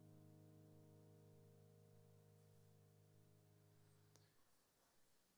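A piano chord rings out and slowly fades away.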